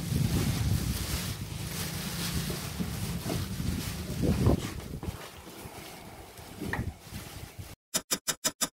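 Plastic wrapping crinkles and rustles as it is pulled off.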